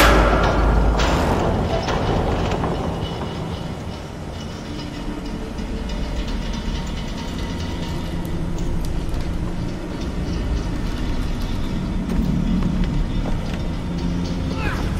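A hanging metal platform rumbles and creaks as it slowly moves.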